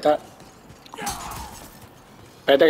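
A sword strikes with a sharp metallic hit.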